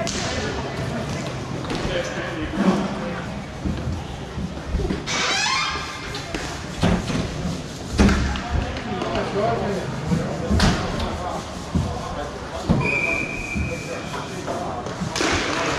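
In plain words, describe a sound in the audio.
Skate wheels roll and scrape across a hard floor in a large echoing hall.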